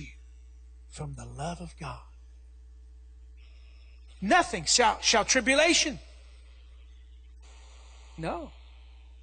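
A man speaks with animation through a microphone in a large echoing hall, pausing between phrases.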